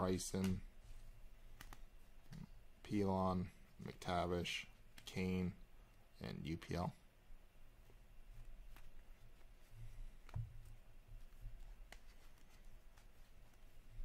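Trading cards slide and rustle against each other.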